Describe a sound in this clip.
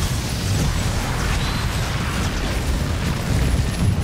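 Explosions boom in a video game battle.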